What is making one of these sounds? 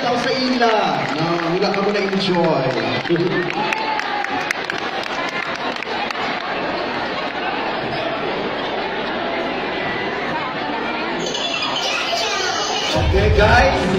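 A large crowd chatters in the background.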